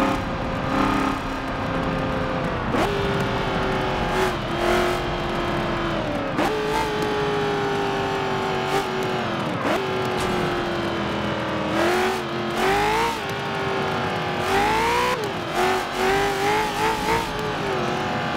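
A racing car engine roars, rising in pitch and dropping sharply with each gear change.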